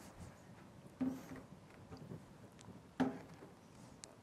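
A laptop knocks against a wooden lectern as it is set down and opened, close by.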